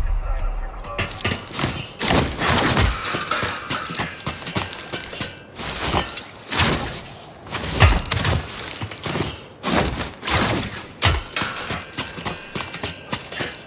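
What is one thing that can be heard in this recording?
A man's hands and feet clatter on a metal mesh wall as he climbs.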